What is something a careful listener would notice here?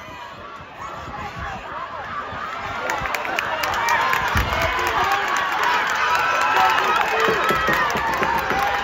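A crowd cheers and shouts louder and louder.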